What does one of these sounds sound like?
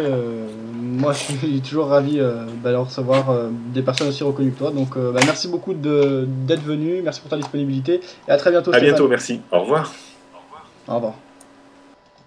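A man speaks steadily into a microphone.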